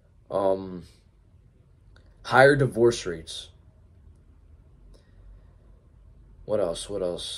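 A young man talks calmly and close by, in short bursts with pauses.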